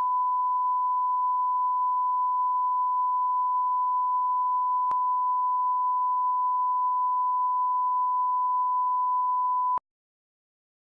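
A steady, high test tone sounds without a break, then cuts off suddenly.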